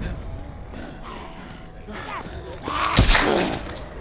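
A zombie growls close by.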